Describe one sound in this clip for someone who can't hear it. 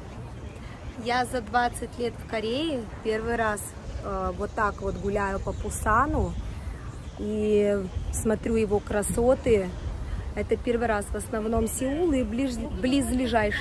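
A young woman talks calmly and close up to the microphone.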